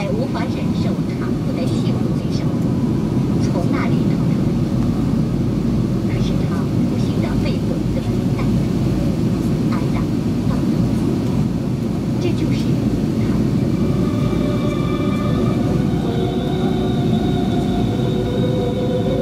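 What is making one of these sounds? Jet engines roar with a steady, deep rumble inside an airliner cabin in flight.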